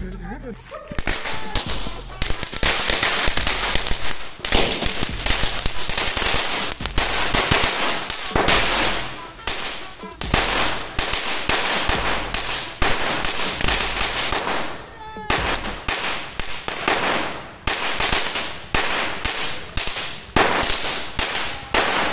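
Firecrackers bang in rapid, crackling bursts outdoors.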